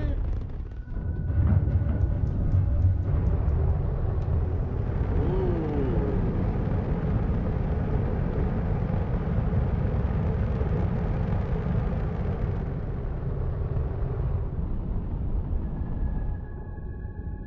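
A spaceship's engines roar with a deep, steady rumble.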